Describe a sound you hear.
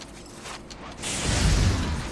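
A fiery blast roars loudly and slowly fades.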